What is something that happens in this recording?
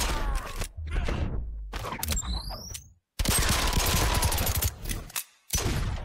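A pair of pistols fire shots.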